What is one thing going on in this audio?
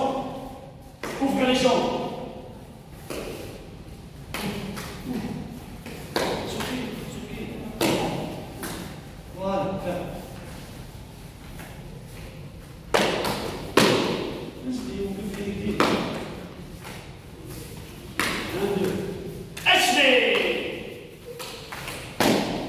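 Bare feet thump on floor mats.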